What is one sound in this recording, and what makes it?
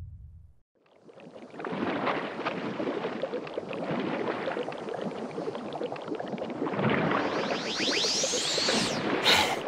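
Water splashes and churns loudly.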